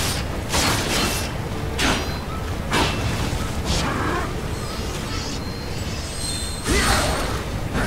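Sword slashes whoosh and clash in quick bursts.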